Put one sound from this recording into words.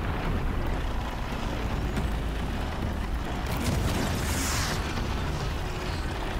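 Fire crackles and bursts in small explosions.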